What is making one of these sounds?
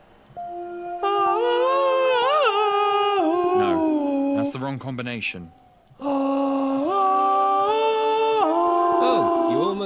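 A chiming melody plays in steady, stepping notes.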